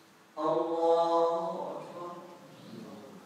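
A man chants a long, held note that echoes through a large hall and fades away.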